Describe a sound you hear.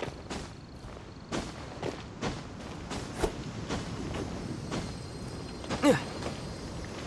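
Footsteps scuff and thud on rock during a climb.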